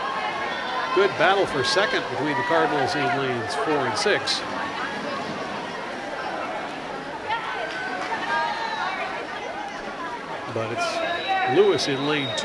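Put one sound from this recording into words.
A crowd of young people cheers and shouts nearby.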